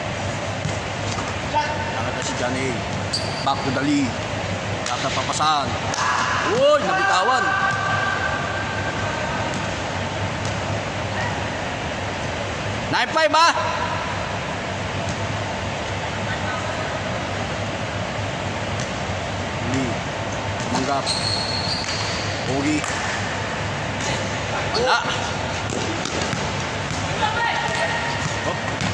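Sneakers squeak sharply on a court floor, echoing in a large hall.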